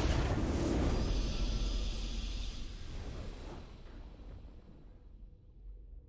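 A triumphant fanfare swells and then fades.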